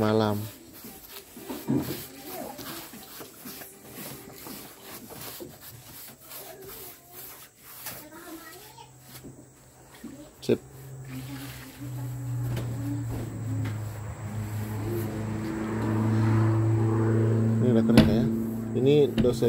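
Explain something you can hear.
A paintbrush brushes against wood.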